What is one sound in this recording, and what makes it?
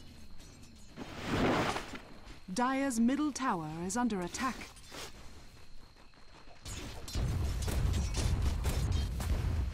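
Fantasy spell effects whoosh and crackle in a video game battle.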